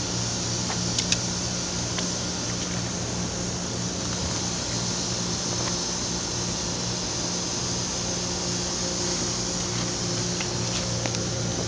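A ratchet clicks as it is worked by hand.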